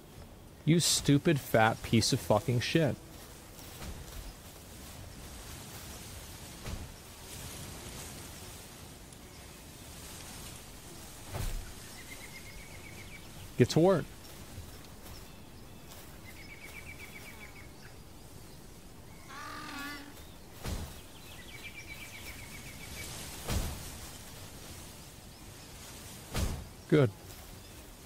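A man speaks briefly into a microphone close by.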